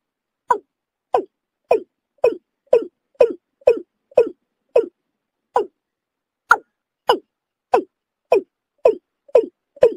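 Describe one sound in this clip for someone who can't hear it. A bird gives short, sharp clucking calls over and over at a steady pace.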